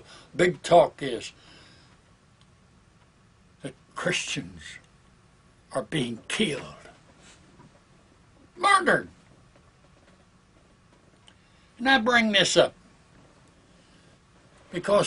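An elderly man speaks calmly and slowly into a close microphone, with pauses between phrases.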